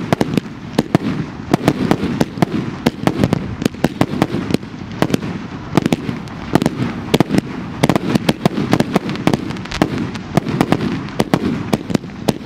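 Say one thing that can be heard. Firework shells launch from tubes with deep thumps and whooshes.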